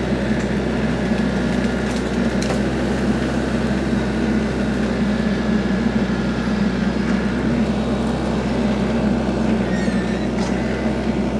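Brush and branches crackle and snap under a tractor.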